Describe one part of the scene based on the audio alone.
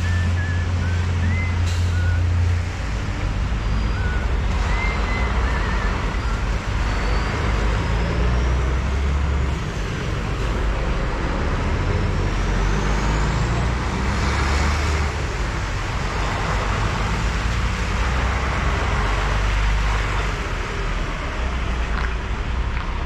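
Traffic rumbles past on a wet road nearby.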